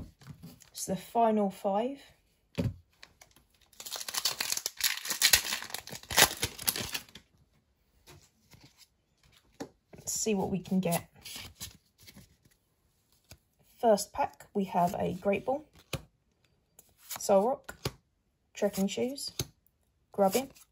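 Playing cards rustle and slide as hands handle them.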